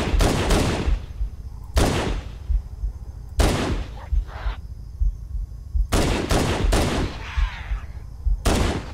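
Loud rifle shots ring out repeatedly with booming echoes.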